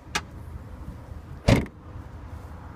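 A hand pats a car's body panel.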